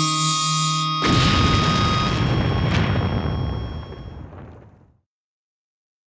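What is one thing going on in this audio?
A huge explosion booms and rumbles, slowly fading away.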